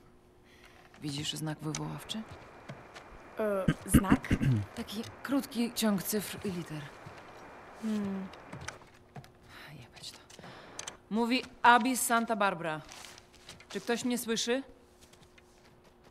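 A young woman speaks quietly.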